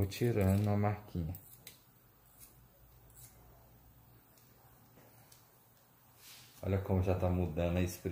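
Scissors snip through hair in quick, light clicks.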